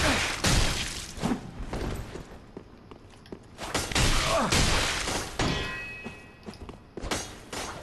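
Blades whoosh and clang in a fight.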